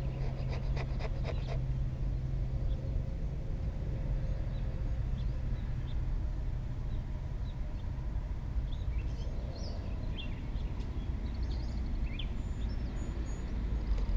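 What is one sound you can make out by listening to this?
A knife shaves and scrapes a wooden stick with short, dry strokes.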